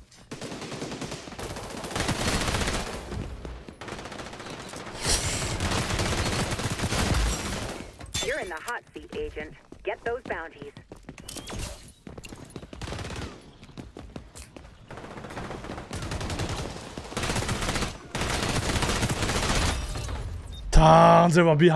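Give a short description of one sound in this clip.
Automatic gunfire rattles in bursts.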